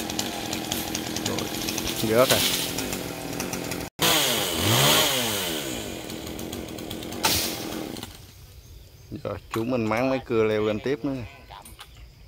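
A chainsaw revs up and down nearby, outdoors.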